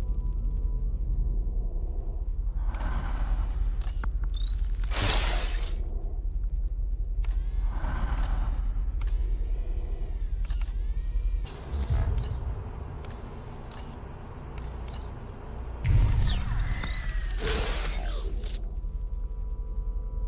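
Harsh electronic static crackles and hisses in short bursts.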